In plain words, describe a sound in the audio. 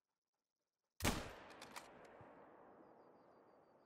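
A rifle shot cracks and echoes away.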